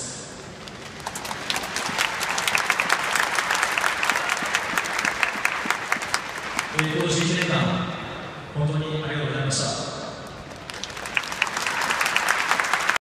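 A large crowd claps and cheers in an open stadium.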